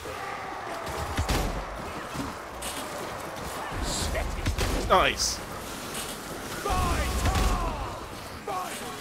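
Gunshots boom with a deep rumble.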